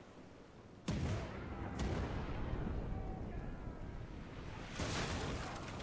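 Cannons fire with loud booming blasts.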